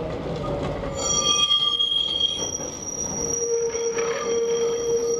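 Tram wheels squeal shrilly on a curve.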